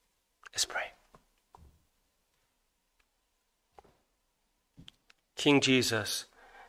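A middle-aged man speaks slowly into a microphone, with long pauses between words.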